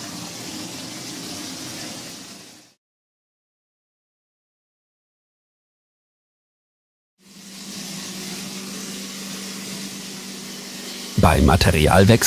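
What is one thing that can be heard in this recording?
A plaster spraying machine hums steadily and hisses as it sprays onto a wall.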